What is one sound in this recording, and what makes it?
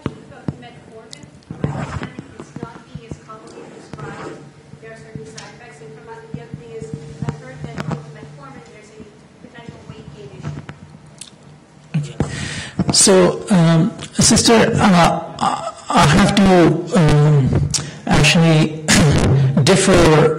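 A middle-aged man lectures calmly into a microphone.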